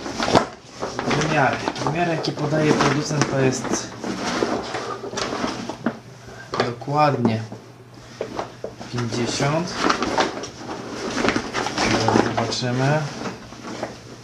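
A man talks calmly to a nearby microphone.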